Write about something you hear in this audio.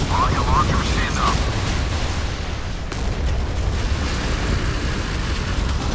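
A warship's guns fire.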